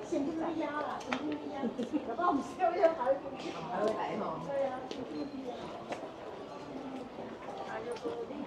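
Women talk with each other close by.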